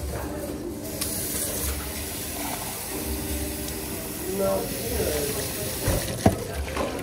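Water runs from a tap and splashes into a cup.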